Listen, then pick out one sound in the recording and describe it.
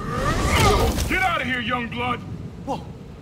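A man speaks gruffly up close.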